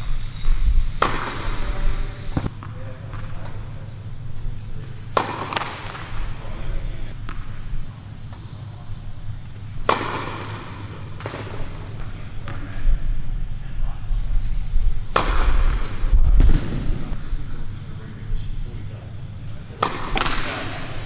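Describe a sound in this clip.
Tennis balls are hit with sharp, regular pops that echo through a large hall.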